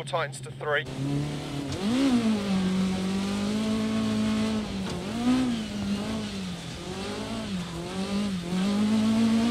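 A car engine roars, its pitch rising and falling as it shifts gears.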